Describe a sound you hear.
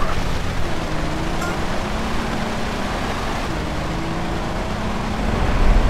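Tyres rumble over rough ground.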